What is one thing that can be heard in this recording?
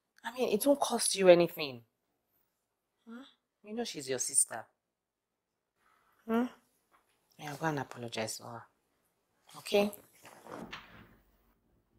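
A woman speaks softly and tenderly, close by.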